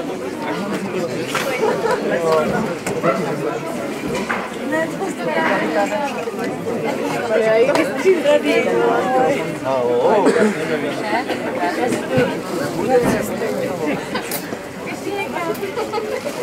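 A crowd of men and women chatter close by, with many voices overlapping.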